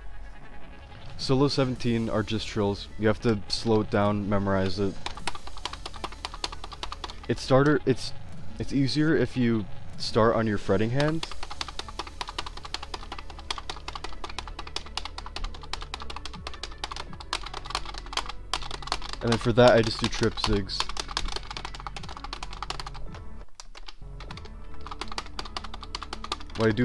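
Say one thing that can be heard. Plastic buttons and a strum bar click rapidly on a toy guitar controller.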